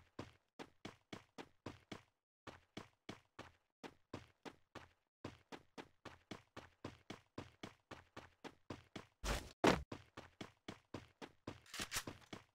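Quick footsteps thud as a video game character runs.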